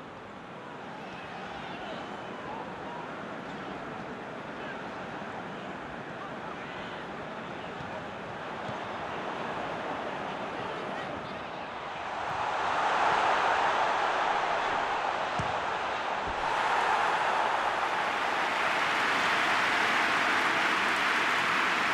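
A stadium crowd cheers and roars, swelling louder partway through.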